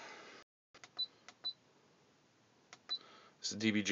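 A car stereo beeps softly as its buttons are pressed.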